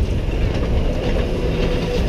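A bus rolls by.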